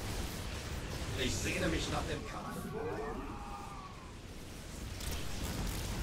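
Explosions boom during a battle.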